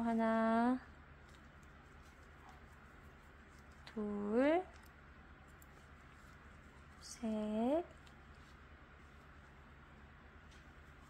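A crochet hook softly scrapes and pulls through yarn.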